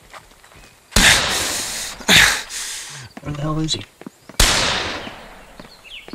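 A pistol fires several loud shots that echo away.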